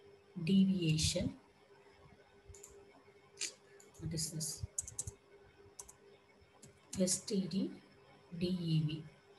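A woman speaks calmly and closely into a headset microphone, in short phrases.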